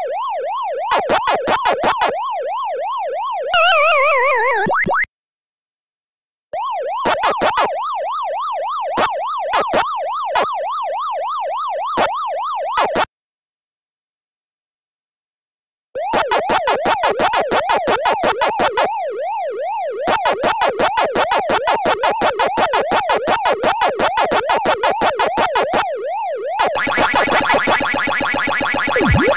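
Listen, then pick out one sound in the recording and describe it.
Quick electronic chirps sound as a game character eats dots.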